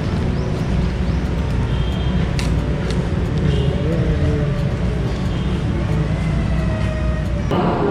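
Paper crinkles in a man's hands close by.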